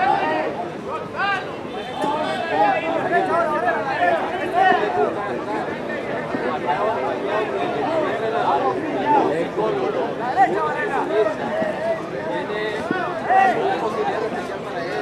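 A crowd murmurs and cheers in a large hall.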